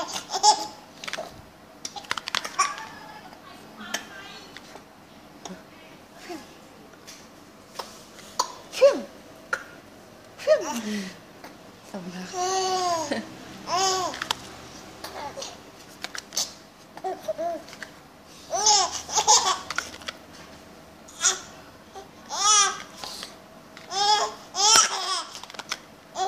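A baby coos and babbles close by.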